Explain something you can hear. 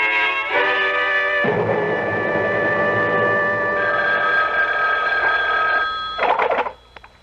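An old radio plays music with steady sustained tones.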